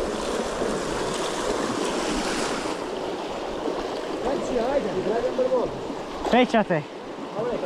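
A shallow stream babbles and trickles over rocks close by.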